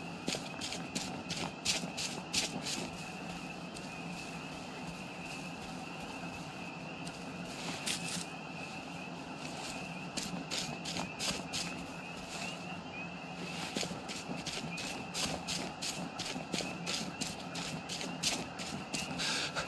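Footsteps rustle through tall grass at a steady walking pace.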